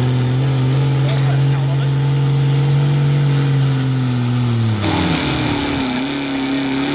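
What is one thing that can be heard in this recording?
A diesel truck engine roars loudly at high revs, then drops in pitch.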